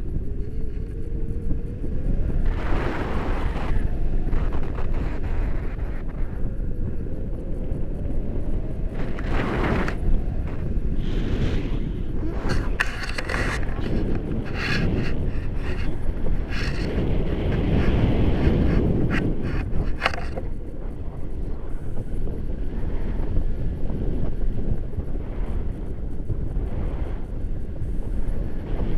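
Strong wind rushes and buffets against a microphone outdoors.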